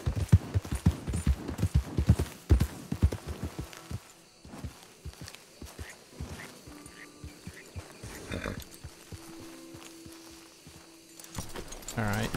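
Horse hooves clop steadily on soft ground.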